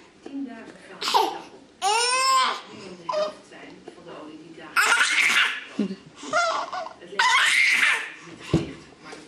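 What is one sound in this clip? A baby laughs.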